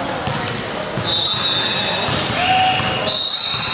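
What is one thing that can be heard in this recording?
Sneakers squeak sharply on a wooden floor in a large echoing gym.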